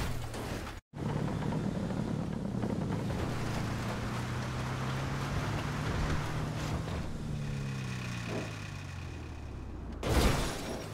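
A heavy vehicle's engine rumbles and shifts up through its gears.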